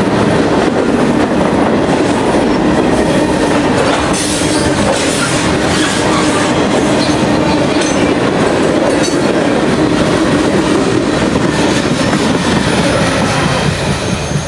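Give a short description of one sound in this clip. Steel wheels clatter and squeal over rail joints.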